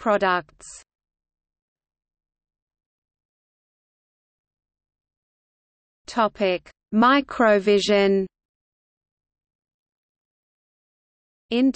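A man speaks calmly in short bursts, close to the microphone.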